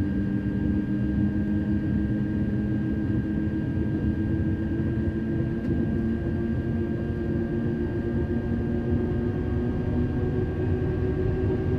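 An electric train motor hums steadily and rises slowly in pitch as the train speeds up.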